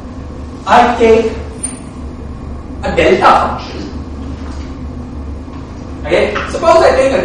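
A man speaks in short phrases, lecturing.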